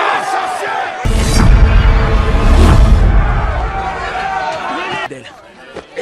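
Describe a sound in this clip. A crowd shouts and jeers loudly.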